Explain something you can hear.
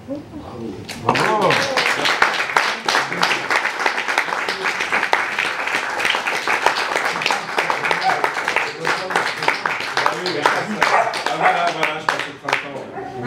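A small audience claps and applauds.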